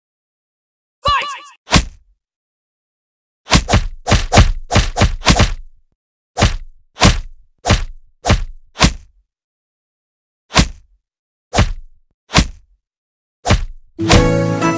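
Sharp smacking hits land one after another in a fight.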